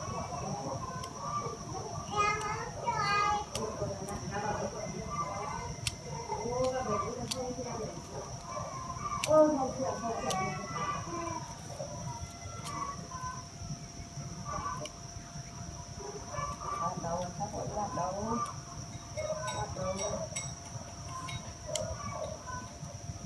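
Pruning shears snip twigs with sharp clicks.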